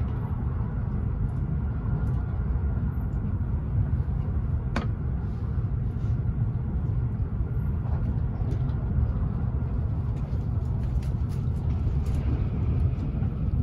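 A train's wheels click and clatter over rail joints.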